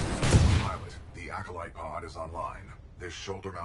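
A man talks into a microphone with animation.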